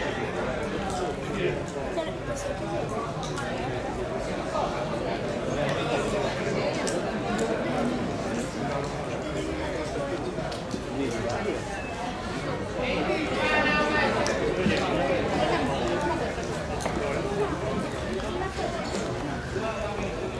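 A small crowd of men chatters and calls out across an open outdoor field.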